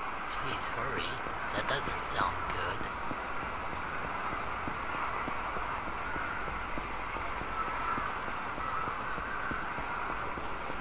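Footsteps run quickly on pavement.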